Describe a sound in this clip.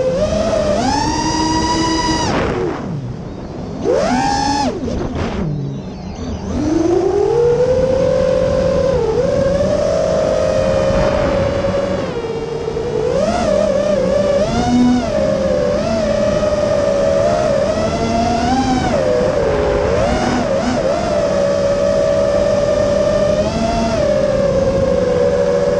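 A small drone's motors whine loudly, rising and falling in pitch as it speeds up and slows down.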